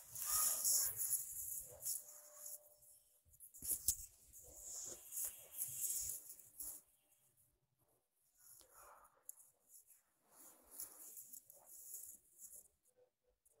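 Long hair rustles as it is brushed with fingers close against an earphone microphone.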